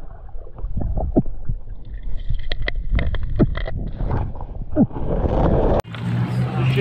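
Water rumbles and knocks, muffled underwater.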